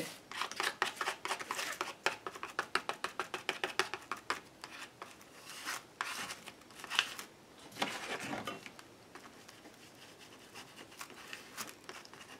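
Hands rub and smooth paper down with soft rustling.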